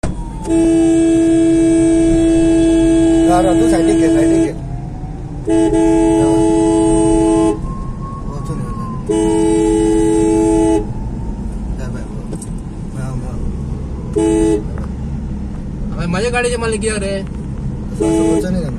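A car engine hums steadily while driving.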